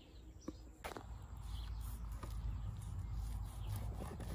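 A knife scrapes and cuts through a fish on a wooden board.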